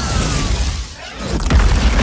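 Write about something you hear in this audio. Fire bursts and crackles.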